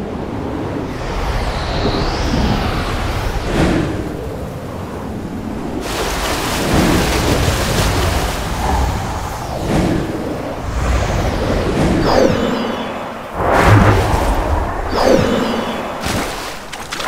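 Wind rushes past in a steady whoosh.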